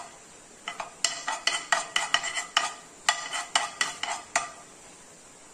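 A metal spoon scrapes and taps against a pan.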